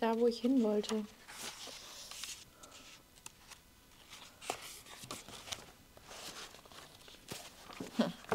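Book pages riffle and flutter.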